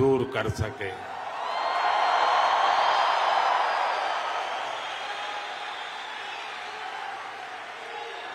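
A large crowd cheers and applauds.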